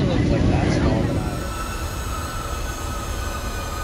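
A jet plane roars past overhead.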